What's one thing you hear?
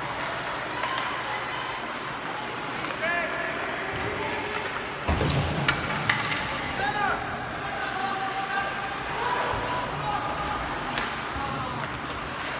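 Players and spectators call out in a large echoing arena.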